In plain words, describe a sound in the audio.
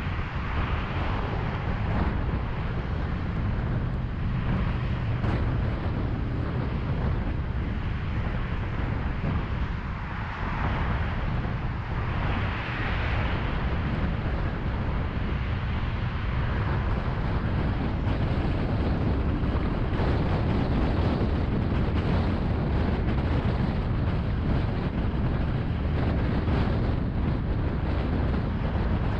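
Passing traffic whooshes by in the other lanes.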